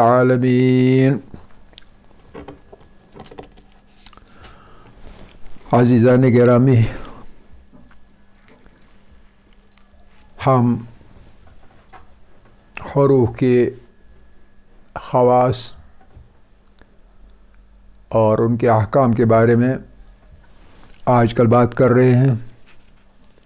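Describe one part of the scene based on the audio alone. An elderly man speaks slowly into a close microphone, in short phrases with pauses.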